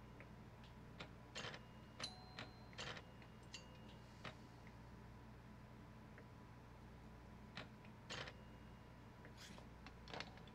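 Pinball bumpers clack and chime as a ball bounces around the table.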